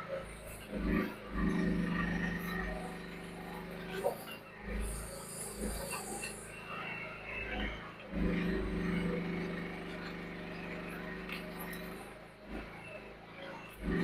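A small diesel excavator engine hums and labours nearby.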